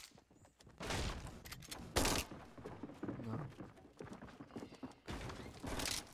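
Wooden panels snap into place with quick clacks.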